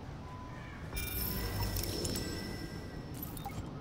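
A device gives off an electronic whooshing hum when activated.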